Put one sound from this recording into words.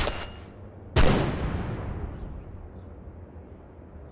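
A grenade bursts with a sharp bang that slowly fades.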